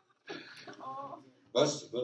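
An elderly man laughs.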